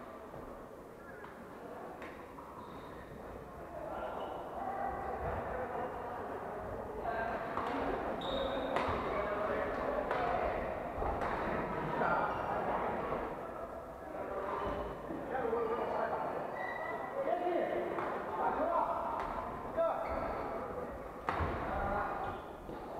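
Badminton shuttlecocks are struck with sharp racket pops in a large echoing hall.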